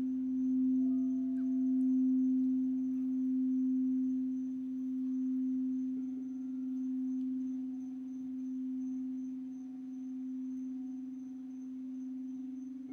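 A singing bowl hums with a steady, pulsing ring.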